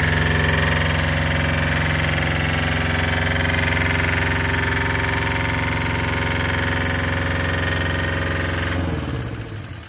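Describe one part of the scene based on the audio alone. A diesel engine on a scissor lift runs at high revs.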